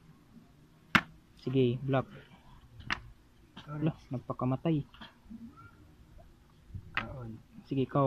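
Plastic bottle caps click as they are set down on a wooden board.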